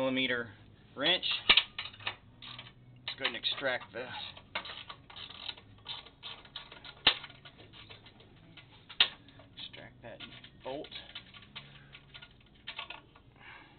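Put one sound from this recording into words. A small metal fitting clicks and rattles as a hand turns it.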